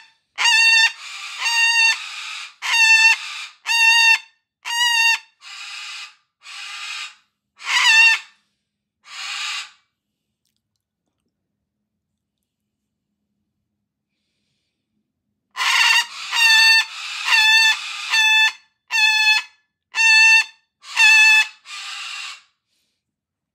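A cockatoo screeches in short bursts of whistling calls.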